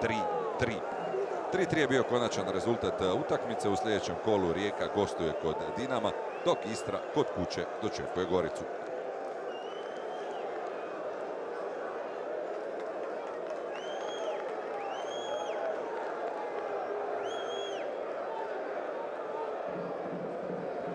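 A large stadium crowd cheers and chants in a steady roar.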